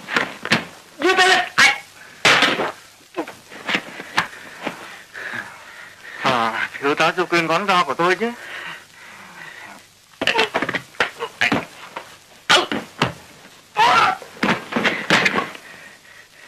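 Punches and blows thud sharply.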